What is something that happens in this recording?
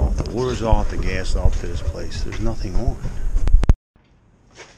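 A middle-aged man talks close by, with animation.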